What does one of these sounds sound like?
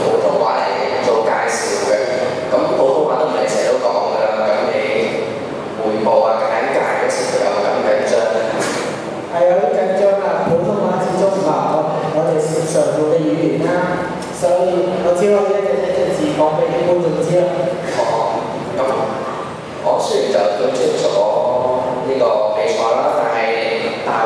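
A second young man answers through a microphone.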